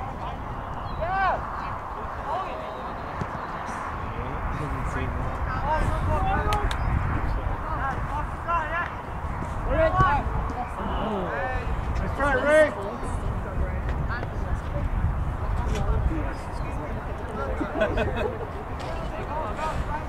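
Players shout to one another across an open field.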